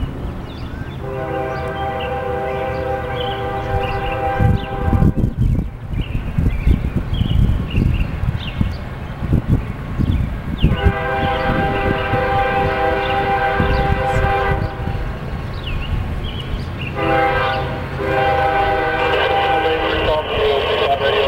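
A train horn blows long, loud blasts several times as it approaches.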